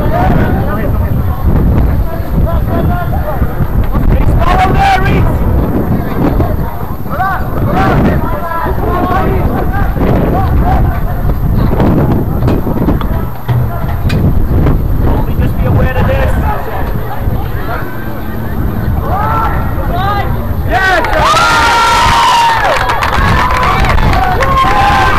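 Young men call out to each other in the distance on an open field.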